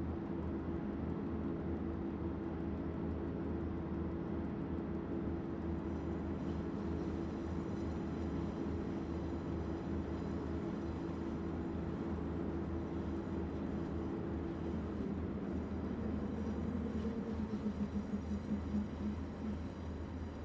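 A locomotive engine hums low and steady while the train runs.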